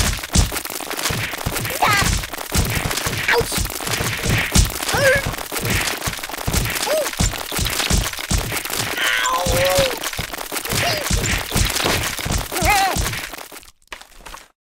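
A cartoon game plays rapid heavy thuds and crashes.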